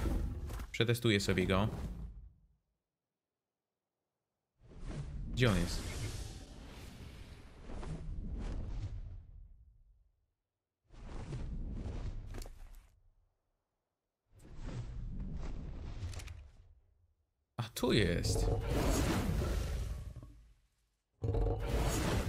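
A dragon breathes out a roaring blast of fire.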